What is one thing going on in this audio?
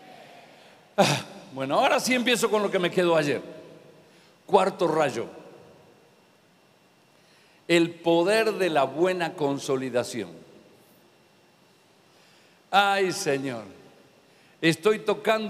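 A middle-aged man speaks with animation through a microphone, in bursts with pauses, in a large echoing hall.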